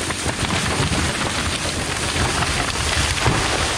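A falling tree crashes through branches to the ground.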